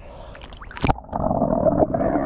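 Water gurgles and bubbles underwater.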